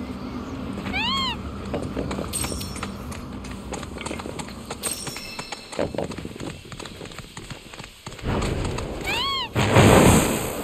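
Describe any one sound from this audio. A large bird gives short, rising squawks.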